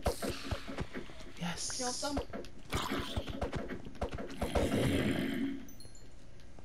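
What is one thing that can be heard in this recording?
Sword blows thud rapidly against a creature.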